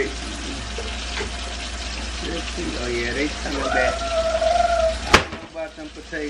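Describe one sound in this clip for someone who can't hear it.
Vegetables sizzle in a pan.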